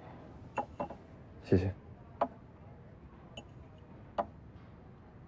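Cups clink on a tea tray.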